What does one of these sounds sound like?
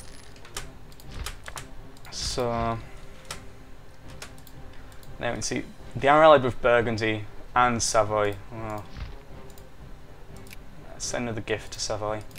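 Interface clicks tick sharply several times.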